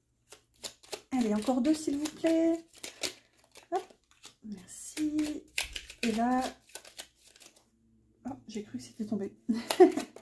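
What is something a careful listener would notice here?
Cards rustle and tap softly as they are shuffled by hand.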